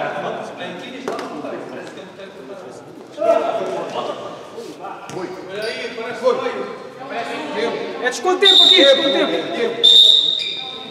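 A ball thuds as players kick it across a hard indoor court.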